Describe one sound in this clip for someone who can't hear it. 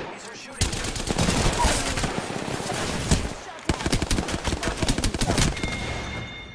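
Video game gunfire cracks in rapid bursts.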